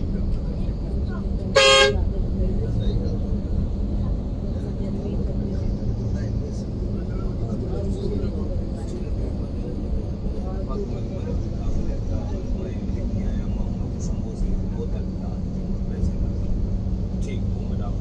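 A bus engine hums and rumbles steadily from inside the cabin.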